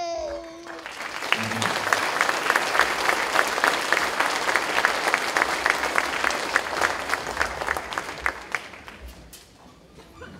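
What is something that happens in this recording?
An audience applauds loudly in a hall.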